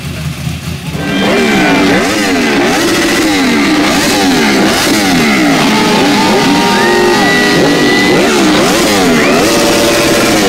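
Motorcycle engines rev hard, rising and falling again and again.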